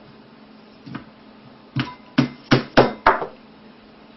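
Chopsticks clack against a ceramic bowl.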